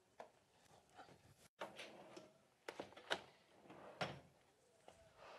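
Objects knock and clatter on a desk as a handbag is picked up.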